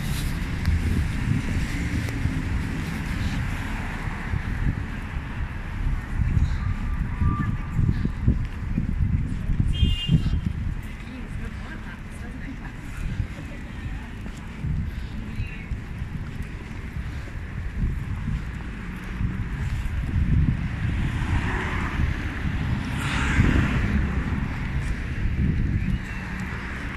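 Traffic hums along a city street.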